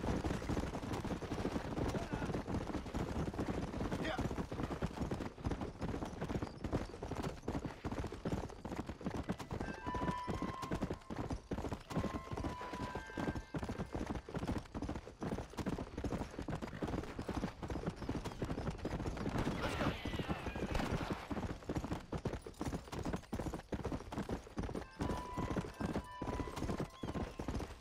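A horse gallops with quick, rhythmic hoofbeats on a dirt path.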